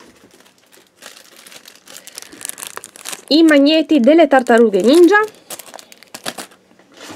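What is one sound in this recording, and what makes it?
Plastic packaging crinkles as hands handle it.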